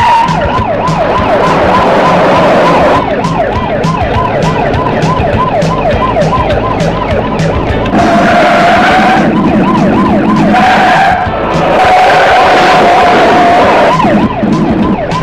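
A police siren wails in fast, repeating sweeps.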